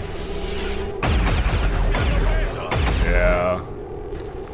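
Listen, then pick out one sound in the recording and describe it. A heavy gun fires loud, booming shots.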